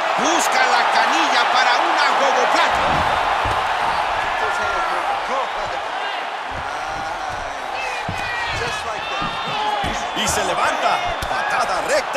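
A large crowd cheers and whistles loudly.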